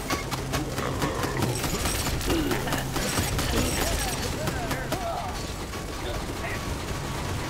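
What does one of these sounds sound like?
Helicopter rotors whir in a video game.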